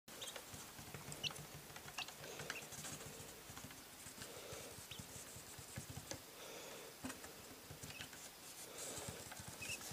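A small chick peeps in short, high chirps.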